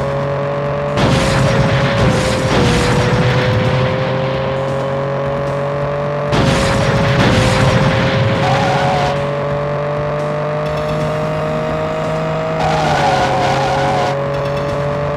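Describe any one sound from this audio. Tyres hiss on the road in loud bursts.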